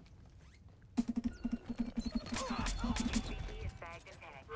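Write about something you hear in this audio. A close struggle ends in heavy blows and thuds.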